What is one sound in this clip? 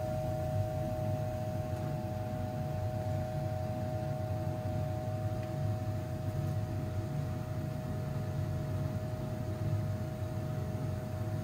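Dark liquid trickles from a glass jug into a jar.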